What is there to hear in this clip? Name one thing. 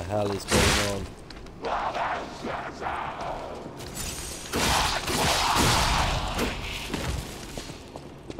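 Blades slash and strike a creature in a fight.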